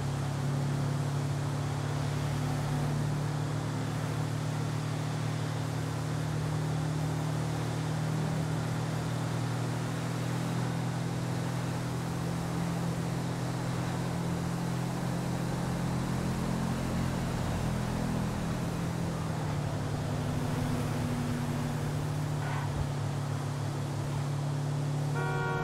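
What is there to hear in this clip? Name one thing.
A car engine hums steadily as it drives.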